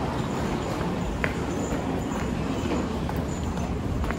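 Footsteps climb stairs.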